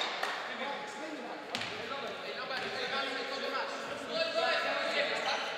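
Players' shoes squeak on a wooden court.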